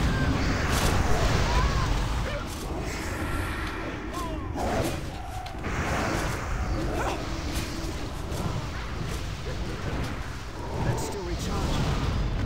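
Weapons clash and strike in combat.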